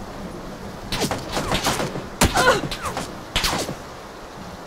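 Gunshots crack nearby in short bursts.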